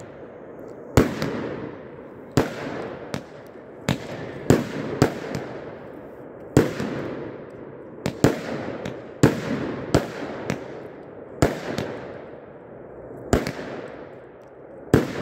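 Fireworks crackle after the bursts.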